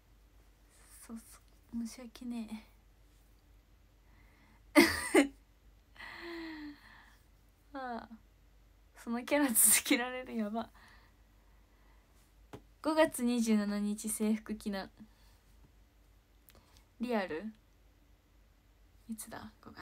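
A young woman talks cheerfully and close to the microphone, in bursts with pauses.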